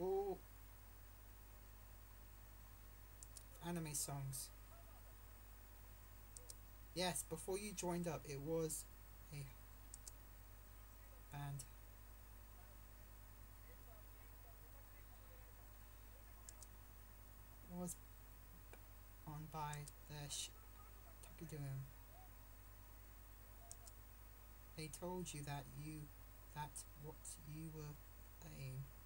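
A young man speaks quietly and haltingly, close to a microphone.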